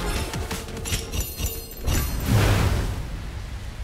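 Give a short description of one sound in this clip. Sword strikes clash and crackle with magic bursts.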